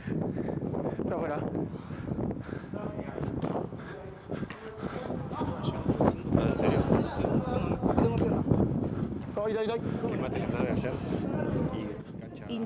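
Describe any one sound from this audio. Young men shout and call out nearby.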